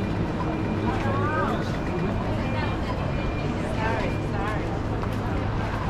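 Women chat as they pass close by.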